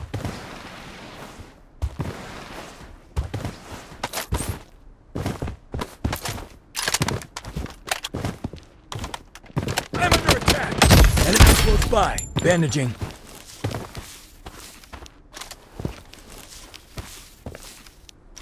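Footsteps thud quickly across ground.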